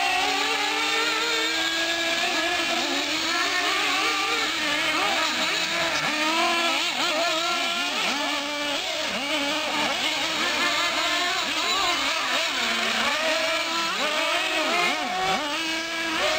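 Electric motors of small remote-control cars whine and rev up and down as the cars race over dirt.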